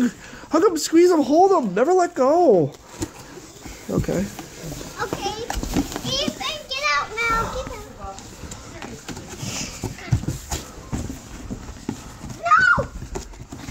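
Young children squeal and shout playfully close by.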